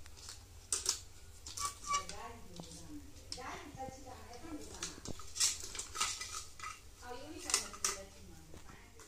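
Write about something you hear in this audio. Plastic toy dishes clatter and tap together.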